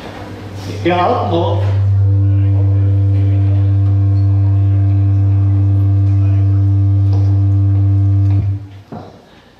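An alphorn blows a long, steady low note.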